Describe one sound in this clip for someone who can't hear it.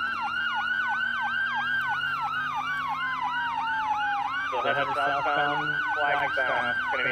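A police siren yelps rapidly and steadily close by.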